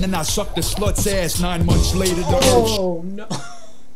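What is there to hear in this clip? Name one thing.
Rap music plays loudly through speakers, then cuts off.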